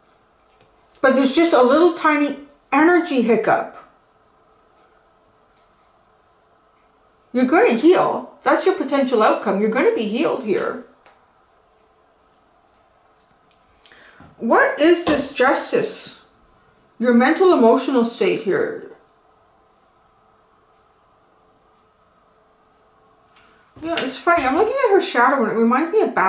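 A middle-aged woman speaks calmly and closely, in short bursts with pauses.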